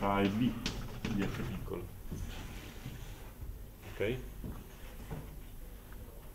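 A man speaks in a lecturing voice nearby.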